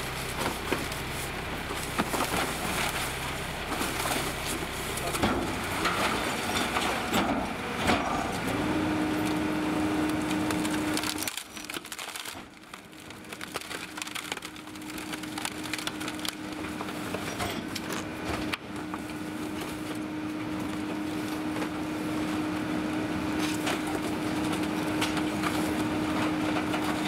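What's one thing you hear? A garbage truck engine idles nearby.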